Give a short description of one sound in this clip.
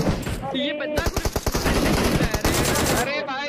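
Rapid gunfire crackles from a video game.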